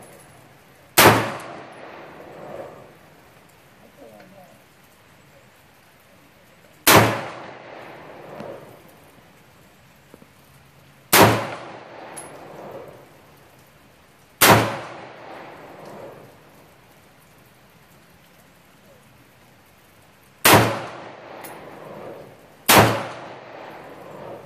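A rifle fires single loud shots that echo outdoors, with pauses between them.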